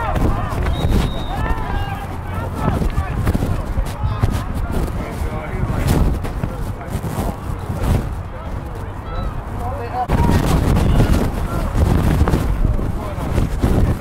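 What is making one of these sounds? Children and adults shout and chatter nearby outdoors.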